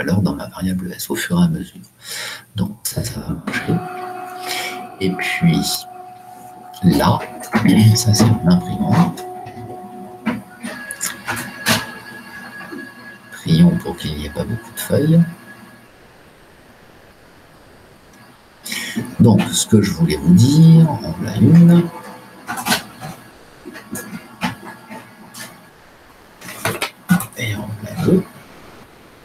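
A middle-aged man speaks calmly through a computer microphone, with pauses.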